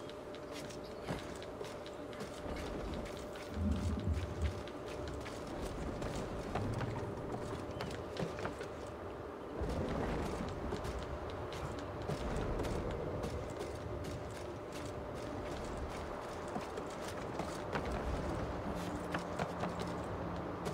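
Hands and feet knock and scrape while climbing a wooden mast.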